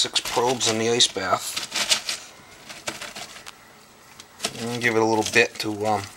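Ice cubes clink and rattle in a metal pot.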